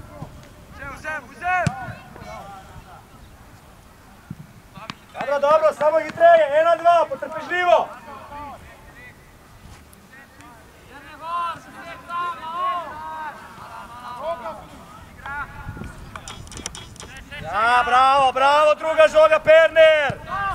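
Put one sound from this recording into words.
Young men shout loudly to each other outdoors.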